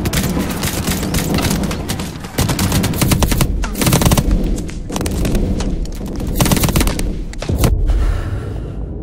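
Heavy gunfire crackles and bangs close by.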